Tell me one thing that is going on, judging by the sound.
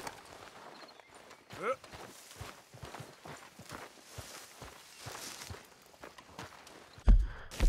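Footsteps crunch on dirt and gravel.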